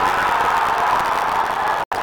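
Young men shout in celebration.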